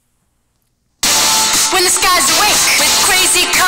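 Music plays loudly.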